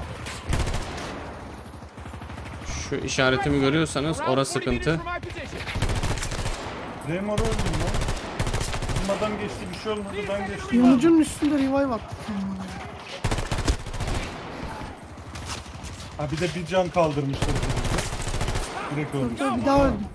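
Rapid bursts of automatic gunfire ring out.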